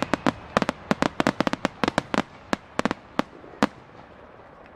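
Fireworks burst with rapid loud bangs and crackles outdoors.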